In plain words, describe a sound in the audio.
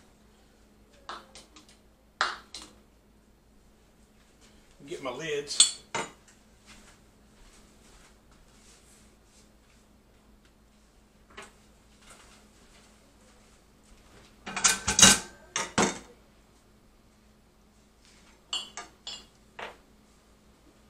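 A metal ladle clinks against glass and metal.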